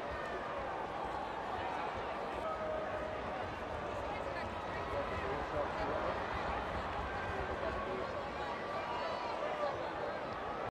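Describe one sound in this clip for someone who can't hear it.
A large crowd murmurs and chatters in a stadium.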